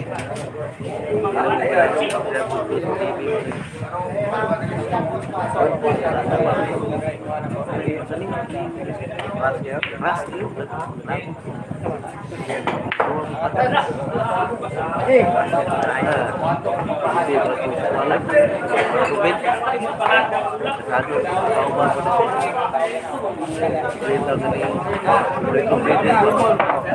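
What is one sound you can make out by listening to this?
A crowd of men and women chatters throughout in a busy room.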